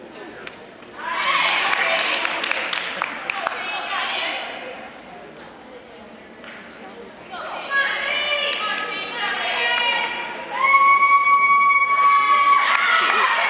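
A crowd of young spectators cheers and shouts in an echoing hall.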